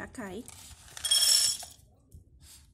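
Dry kibble rattles as it is poured into a bowl.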